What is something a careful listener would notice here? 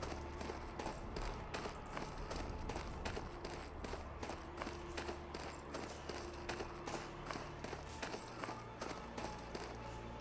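Footsteps crunch steadily through dry grass.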